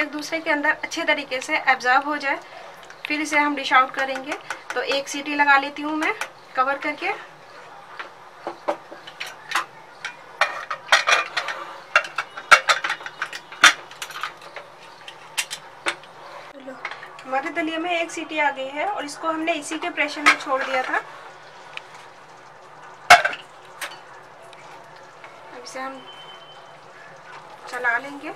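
A ladle scrapes and clatters against a metal pot while stirring.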